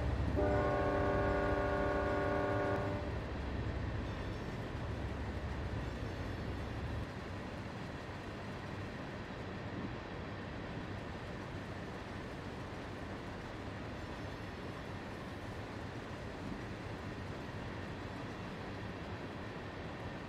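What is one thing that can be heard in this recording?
A freight train rumbles and clatters steadily past.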